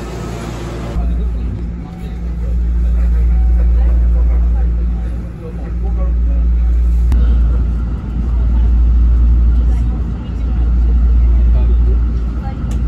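A train rumbles steadily from inside a carriage, its drone swelling and easing.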